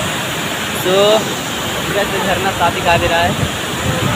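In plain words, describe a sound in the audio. A waterfall rushes nearby.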